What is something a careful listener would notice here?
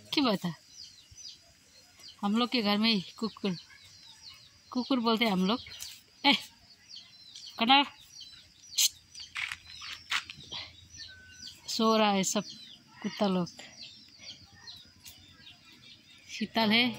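Chickens call loudly nearby, again and again.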